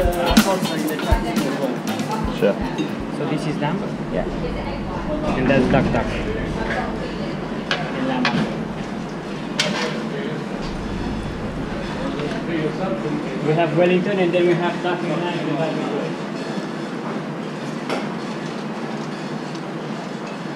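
Metal tweezers tap and clink against a metal tray.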